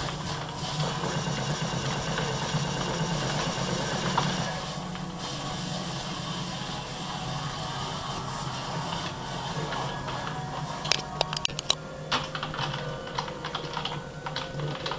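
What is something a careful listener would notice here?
Computer game sounds play steadily from loudspeakers.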